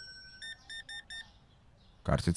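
A checkout scanner beeps several times in quick succession.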